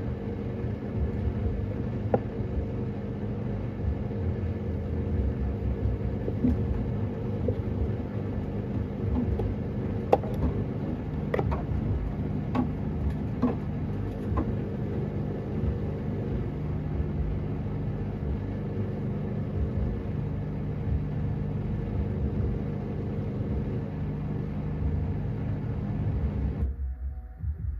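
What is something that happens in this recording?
A washing machine drum rumbles and hums steadily as it turns.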